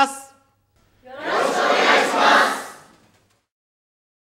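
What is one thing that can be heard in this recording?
A large group of young men and women shout together in unison.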